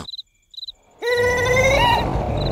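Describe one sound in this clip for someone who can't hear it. A cartoon creature cries out in a high, squeaky voice.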